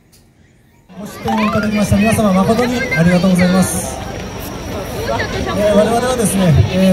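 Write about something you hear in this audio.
A crowd of people chatters loudly outdoors.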